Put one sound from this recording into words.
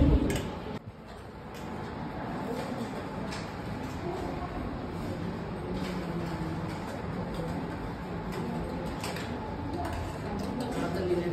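Women chat quietly in the background.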